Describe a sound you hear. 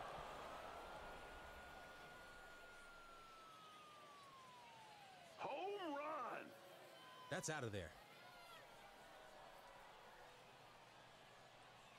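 A crowd cheers in a large stadium.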